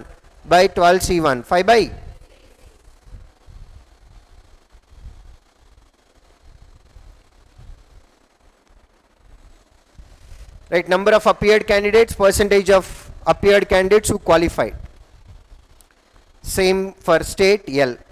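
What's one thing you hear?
A man speaks clearly into a close microphone, explaining with animation.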